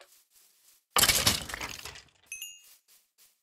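A sword strikes a creature with a sharp hit.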